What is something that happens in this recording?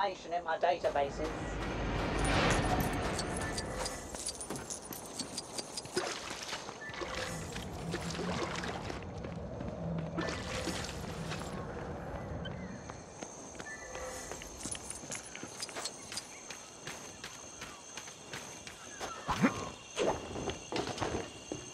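Quick footsteps patter along the ground.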